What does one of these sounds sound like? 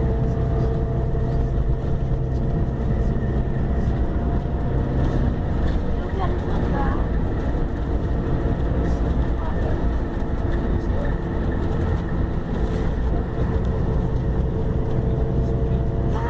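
A bus engine drones steadily from inside the cabin.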